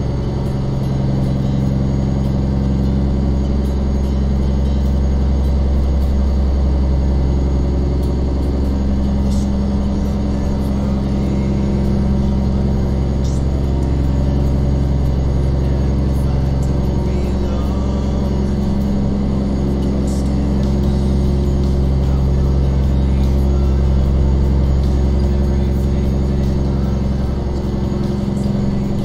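A truck's diesel engine rumbles steadily as it drives.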